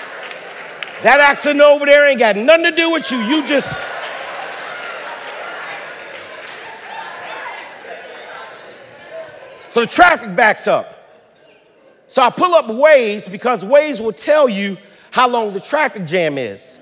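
A man preaches forcefully through a microphone in a large echoing hall.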